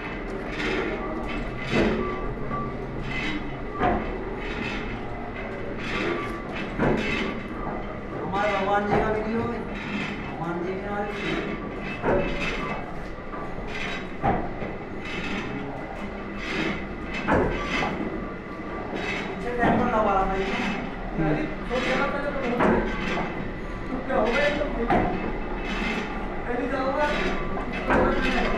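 A cutting tool scrapes against a turning metal drum.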